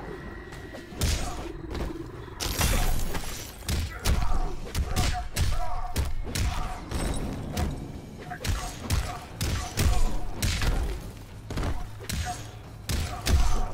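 Punches and kicks land with heavy thuds and smacks in a fast fight.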